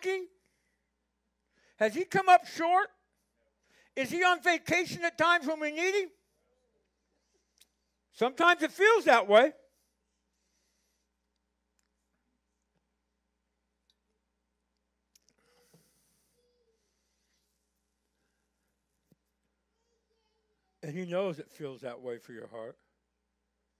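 An older man speaks through a microphone in short phrases with long pauses.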